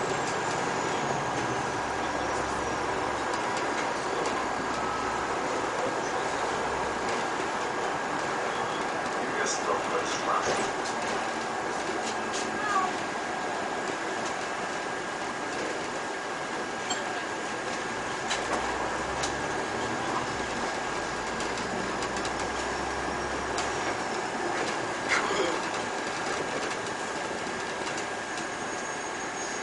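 A city bus drives along an asphalt road at a steady speed.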